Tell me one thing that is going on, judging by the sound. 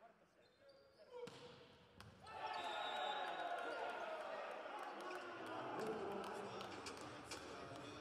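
A volleyball is struck hard with a sharp smack in an echoing hall.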